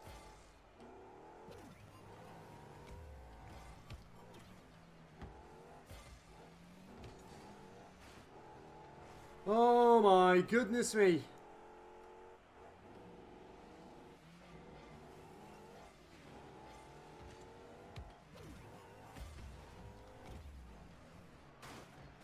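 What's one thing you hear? A game car's engine hums and revs.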